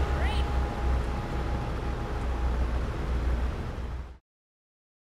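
Car engines idle with a low, steady rumble.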